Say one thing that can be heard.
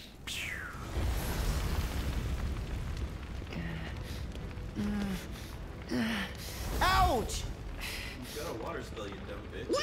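Fire roars with a deep rumble.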